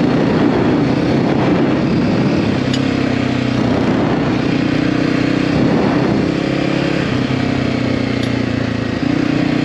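Tyres crunch and rumble over a gravel track.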